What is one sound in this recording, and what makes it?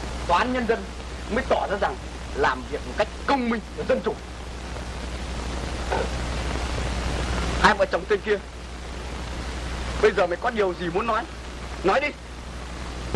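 A man speaks sternly and loudly with pauses.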